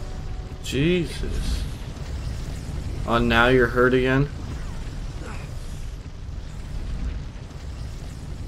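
Wind blows steadily in a snowstorm.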